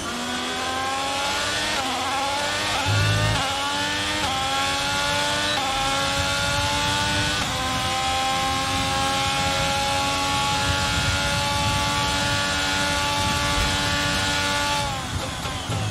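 A racing car engine revs high, climbing through the gears.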